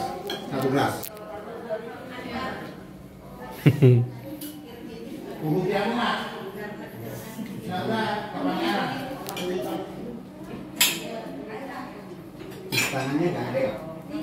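Serving spoons clink against dishes.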